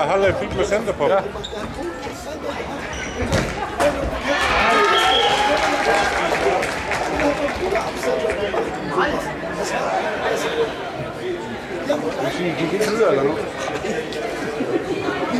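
Shoes squeak on a hard floor.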